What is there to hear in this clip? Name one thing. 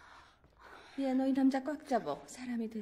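A middle-aged woman speaks calmly.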